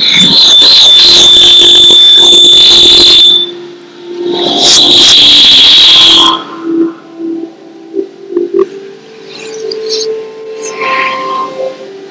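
Loud, distorted music plays through speakers, in bursts.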